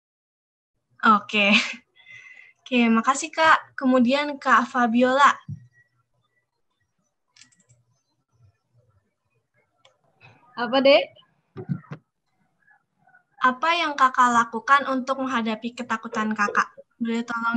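A young woman speaks with animation over an online call.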